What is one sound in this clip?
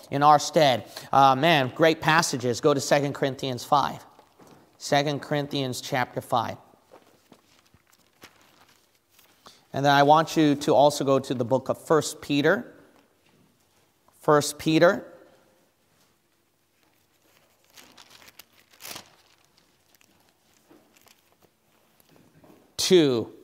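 A man reads aloud calmly into a close microphone, with pauses.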